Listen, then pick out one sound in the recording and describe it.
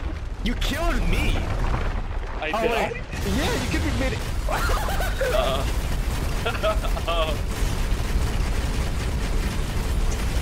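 Sand erupts in heavy, rumbling blasts.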